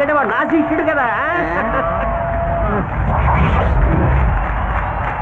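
A crowd cheers in the background.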